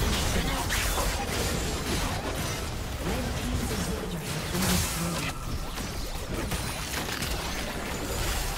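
Magic spells crackle and blast in a busy fantasy battle.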